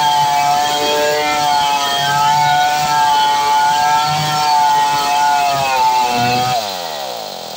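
A chainsaw roars loudly as it cuts through wood.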